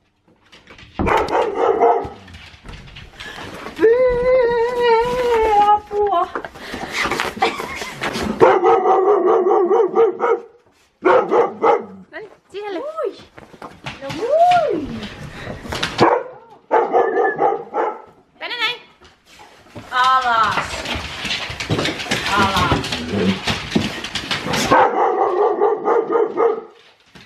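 Several dogs howl and whine excitedly, close by.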